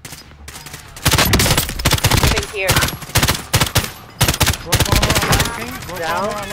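Rapid gunfire bursts out in loud, quick volleys.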